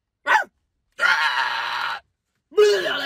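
A young man shrieks loudly.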